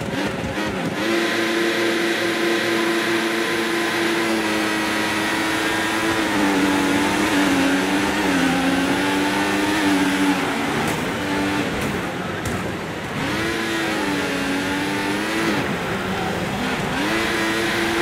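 A racing car engine roars at high speed, rising and dropping in pitch with gear changes.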